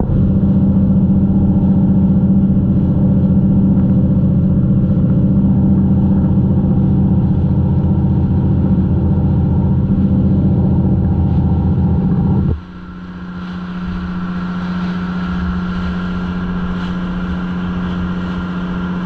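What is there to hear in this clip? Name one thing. A boat engine drones steadily, then suddenly drops much quieter.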